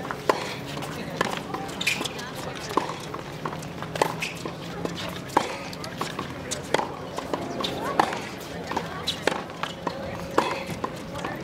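A tennis ball is struck sharply with a racket, again and again.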